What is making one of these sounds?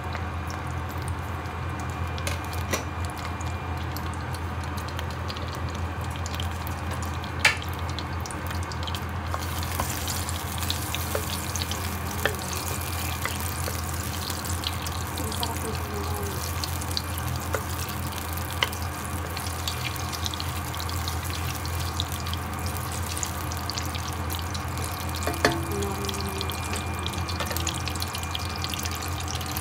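Butter sizzles and crackles in a hot pan.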